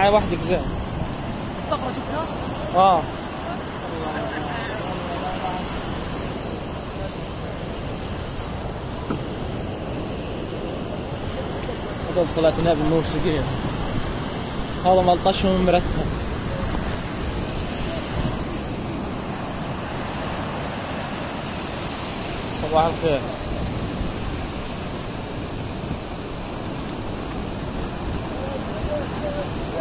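Waves wash steadily onto a nearby shore.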